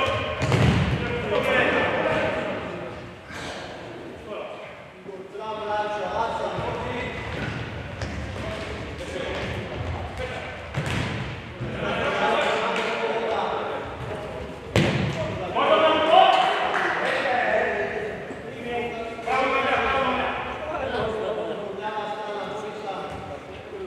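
Men shout across a large echoing hall.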